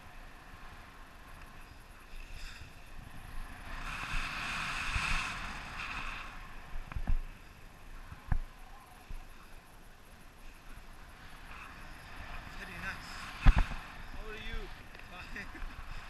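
Wind rushes and buffets past a microphone outdoors.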